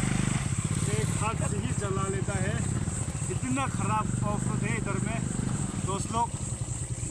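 A man talks with animation outdoors.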